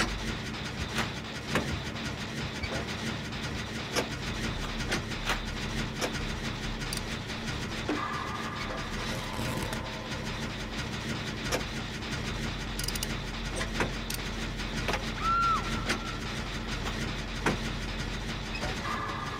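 A small engine rattles and clanks steadily as it is worked on.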